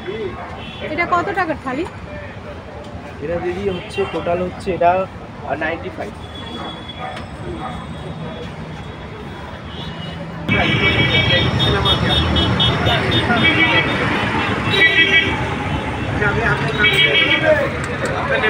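Men talk nearby in a busy street.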